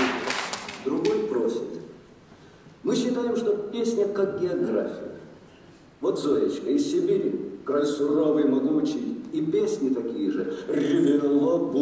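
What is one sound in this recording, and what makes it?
A man sings loudly in a large echoing hall.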